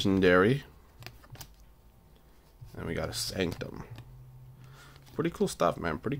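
Trading cards rustle and flick softly in a person's hands.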